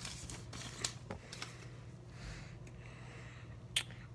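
Cards slide against each other as hands flip through them.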